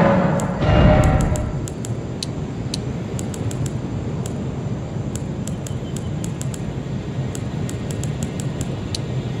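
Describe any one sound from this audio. Short soft menu clicks tick again and again as a selection moves through a list.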